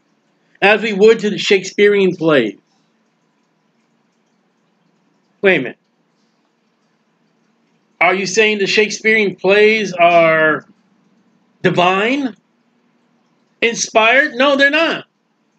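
A middle-aged man speaks calmly through a microphone on an online call.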